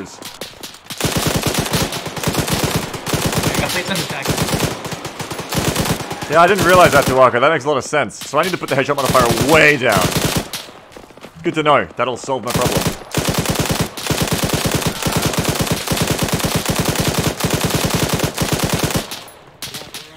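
A rifle fires in rapid, steady bursts of gunshots.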